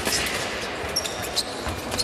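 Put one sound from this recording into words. A scoring machine beeps.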